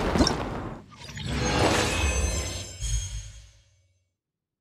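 A short, triumphant jingle plays, then fades to silence.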